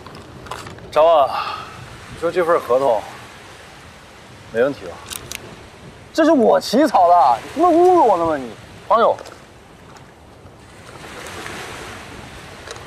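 Another young man speaks calmly close by.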